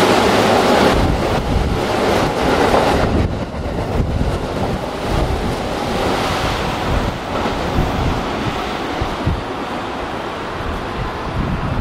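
Train wheels clatter rhythmically over the rail joints.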